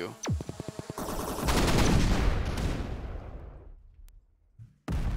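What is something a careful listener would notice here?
An explosion booms and slowly fades.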